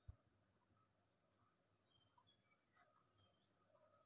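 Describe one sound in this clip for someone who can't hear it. A woman sips a hot drink quietly.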